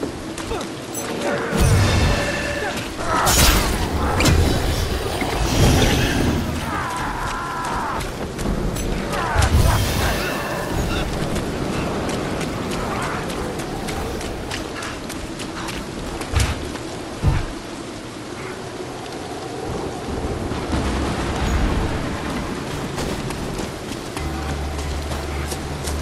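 Footsteps tread over wooden boards and wet ground.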